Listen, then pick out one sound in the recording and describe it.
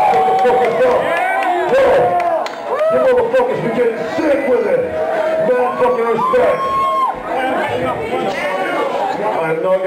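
A man raps loudly into a microphone over a loudspeaker.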